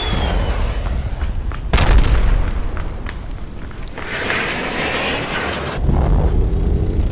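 Footsteps slap quickly on pavement as a man runs.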